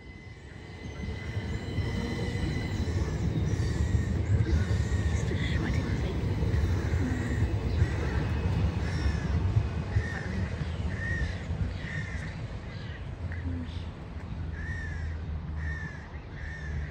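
A train rumbles past close by, then slowly fades into the distance.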